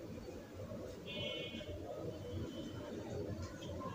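A metal lid clinks onto a pot.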